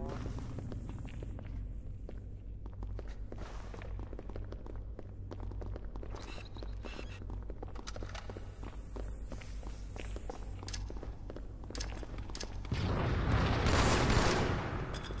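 Video game gunfire crackles in rapid bursts.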